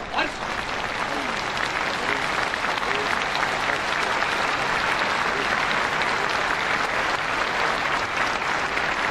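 A large crowd outdoors breaks into loud, steady applause.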